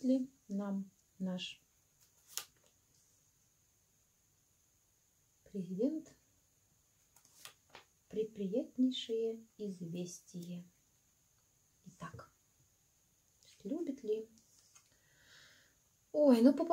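Playing cards are laid down onto a table with soft taps.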